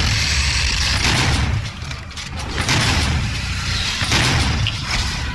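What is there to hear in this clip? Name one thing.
Loud gunfire and explosions blast from a video game.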